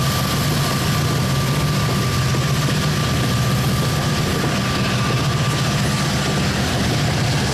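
Steel wheels squeal on the rails.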